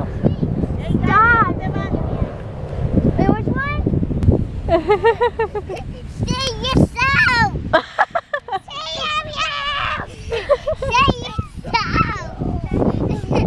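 Young children shout and squeal excitedly close by.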